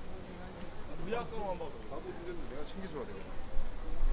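Young men talk nearby, passing close.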